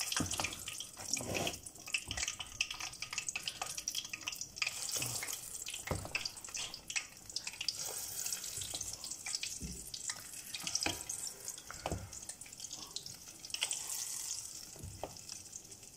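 A spoon scrapes and slaps through thick batter in a bowl.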